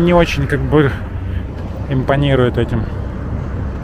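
A young man talks with animation close by, outdoors.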